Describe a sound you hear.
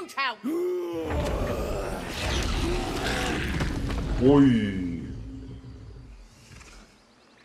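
A bear roars loudly with a deep rumbling burst.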